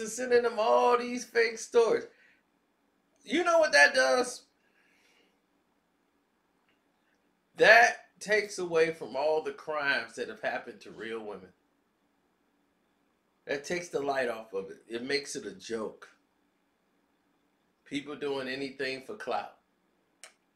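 A man speaks in short bursts with pauses.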